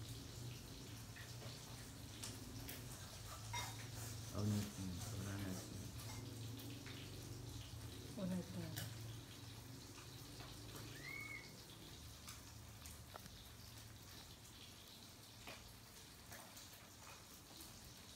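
A baby macaque bites and chews on soft fruit.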